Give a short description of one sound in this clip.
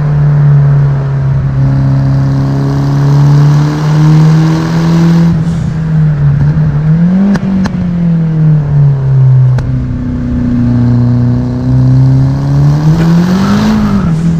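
A car engine hums loudly inside the cabin, its pitch rising and falling with gear changes.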